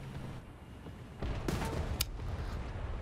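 A shell explodes with a loud boom.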